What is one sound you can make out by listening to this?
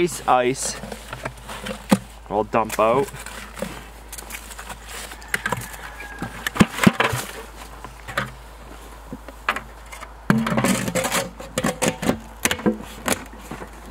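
Plastic buckets knock and clatter together.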